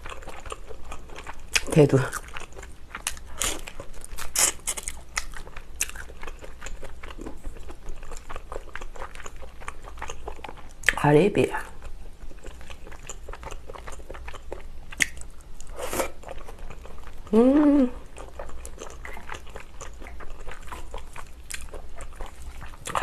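A young woman chews food close to a microphone with wet, smacking sounds.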